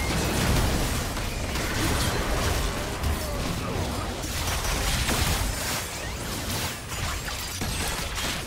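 Game spell effects crackle and boom in a busy fight.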